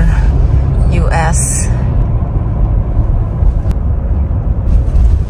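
A car's tyres rumble steadily on the road, heard from inside the car.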